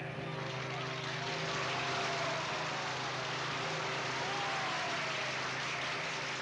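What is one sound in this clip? A huge outdoor crowd cheers and roars loudly and steadily.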